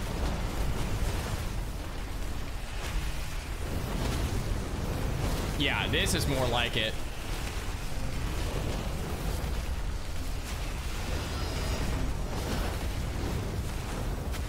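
Magic spells crackle and whoosh in a video game.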